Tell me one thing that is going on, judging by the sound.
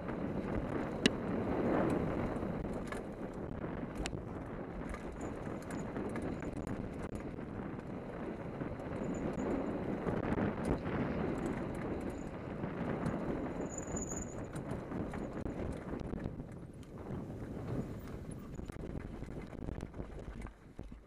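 Wind rushes past loudly as a bike speeds downhill.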